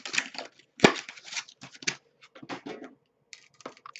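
A plastic case clatters against a glass table as it is picked up.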